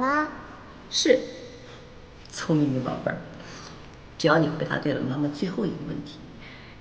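A middle-aged woman speaks softly and warmly up close.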